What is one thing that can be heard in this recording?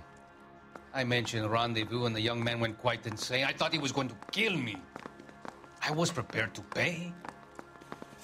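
A middle-aged man speaks with emotion, close by.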